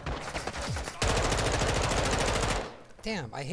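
A rifle fires a rapid burst of gunfire.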